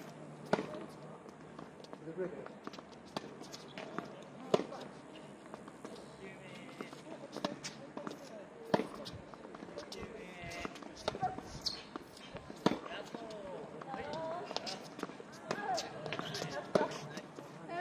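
A tennis ball is struck sharply with a racket, again and again.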